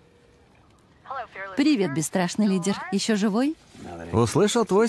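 A man speaks close by on a phone, with animation.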